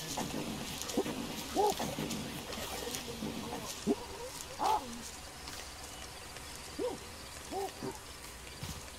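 Apes grunt and hoot close by.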